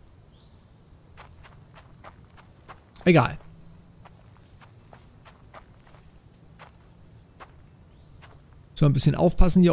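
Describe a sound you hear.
Footsteps crunch through leaves and undergrowth.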